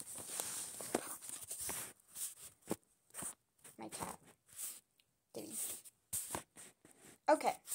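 A young girl speaks quietly and close by, in short bursts.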